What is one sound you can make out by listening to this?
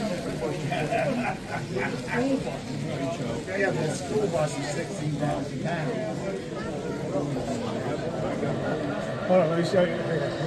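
A model train rolls along its track.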